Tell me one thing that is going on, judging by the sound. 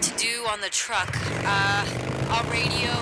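A motorcycle engine starts and idles with a low rumble.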